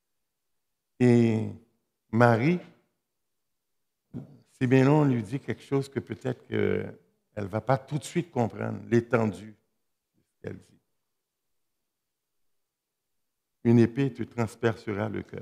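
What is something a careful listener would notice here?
A middle-aged man speaks through a microphone in a hall, pausing between phrases.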